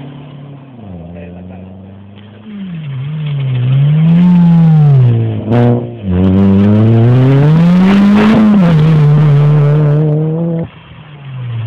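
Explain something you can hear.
A rally car engine roars loudly as it speeds past close by, revving up and down through the gears.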